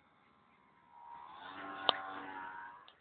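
A small model plane's motor buzzes overhead, growing louder as it flies close.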